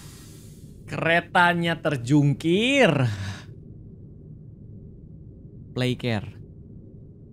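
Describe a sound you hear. A young man laughs and talks into a close microphone.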